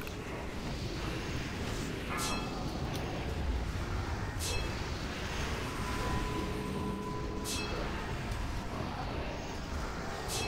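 Magic spells burst and chime in a noisy battle.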